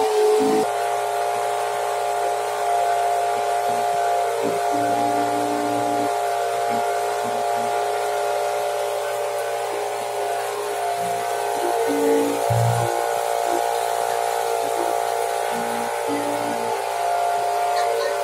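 Water splashes and laps against a boat's hull.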